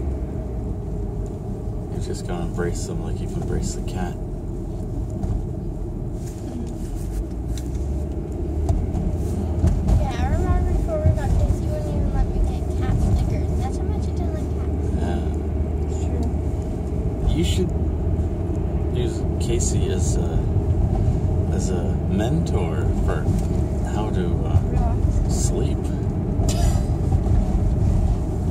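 A middle-aged man talks close by, in a calm voice.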